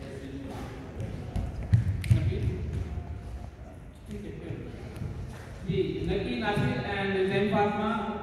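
A man speaks into a microphone through loudspeakers in an echoing hall.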